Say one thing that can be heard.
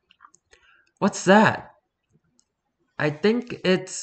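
A young woman reads aloud with animation, close to a microphone.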